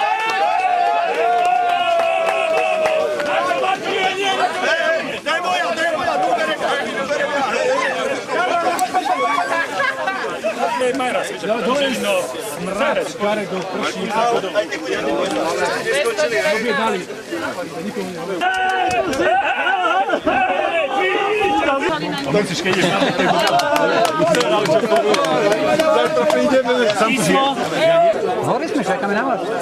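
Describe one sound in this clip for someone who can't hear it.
A crowd of adults chatters and cheers outdoors.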